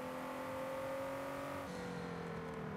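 A sports car engine revs high, then drops in pitch as the gear shifts.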